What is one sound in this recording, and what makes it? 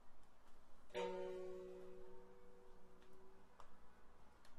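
A plucked string instrument sounds a single chord that rings and slowly fades.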